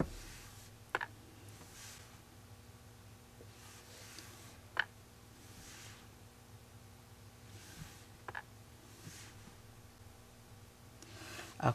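A tool taps softly on stretched fabric.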